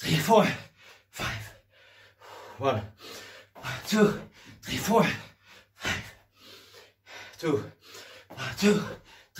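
A man grunts with effort close by.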